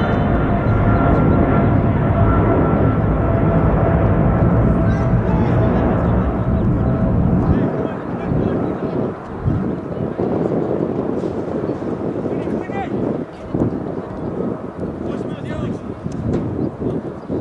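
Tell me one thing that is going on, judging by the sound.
Players call out to one another far off across an open field.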